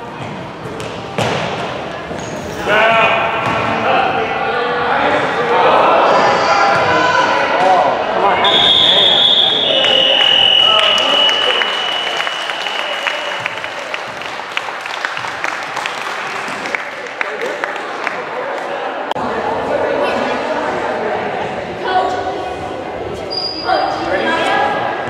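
A basketball thuds as it bounces on a wooden floor.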